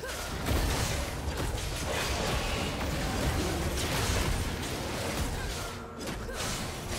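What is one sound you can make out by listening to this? Game spell effects whoosh and crackle in a fight.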